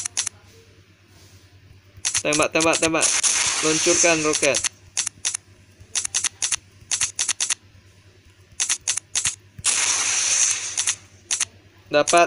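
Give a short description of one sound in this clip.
A jet's guns fire in short rapid bursts.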